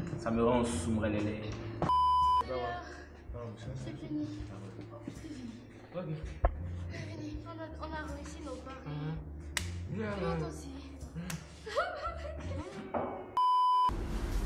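A young woman talks with animation close by.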